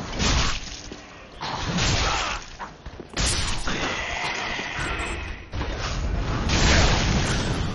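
A sword swings and strikes flesh.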